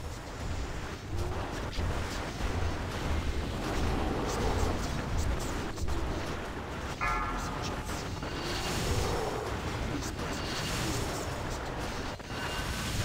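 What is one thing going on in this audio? Magic blasts and impacts crackle and boom in a fantasy battle.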